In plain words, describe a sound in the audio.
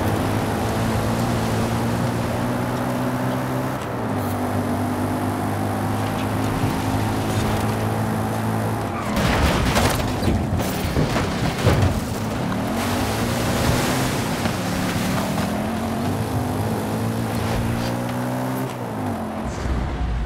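A car engine roars at high revs, shifting gears as it speeds up.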